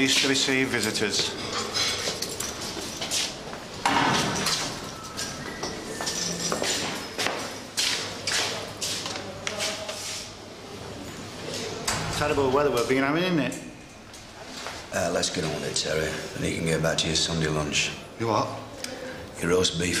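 A middle-aged man speaks firmly.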